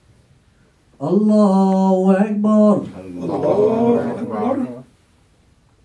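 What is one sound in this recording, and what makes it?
A man chants a long call in a loud, sustained voice.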